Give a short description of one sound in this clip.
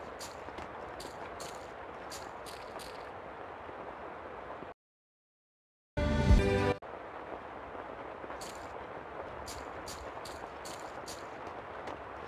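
Footsteps tap on a hard floor in an echoing space.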